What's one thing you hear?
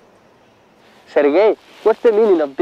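A man speaks calmly, outdoors nearby.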